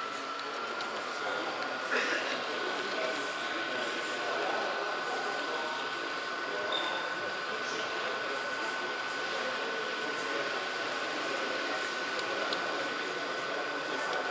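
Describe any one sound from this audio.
A small electric motor whirs steadily as a model train rolls along its track.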